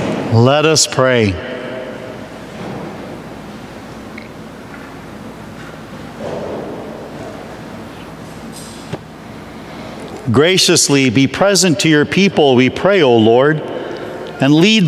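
A middle-aged man chants in a sung voice through a microphone, echoing in a large hall.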